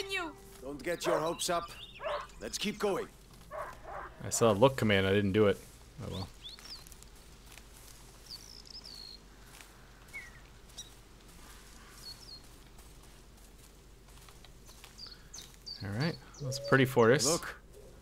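Footsteps rustle through dry fallen leaves.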